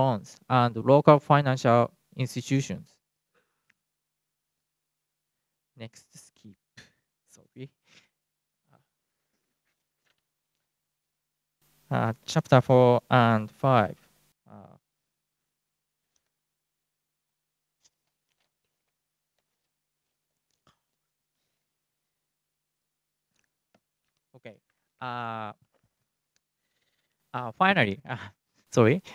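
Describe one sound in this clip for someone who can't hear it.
A man speaks calmly through a microphone, with long pauses between phrases.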